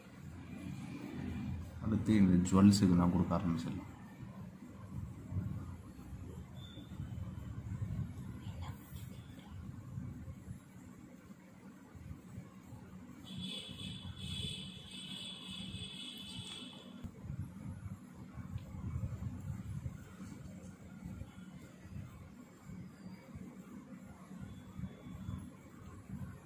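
A stick softly scrapes and taps on a small figure.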